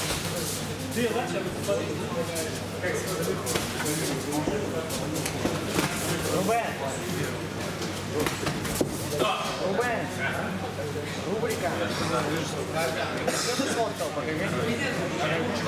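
Boxers' feet shuffle and thud on a ring canvas.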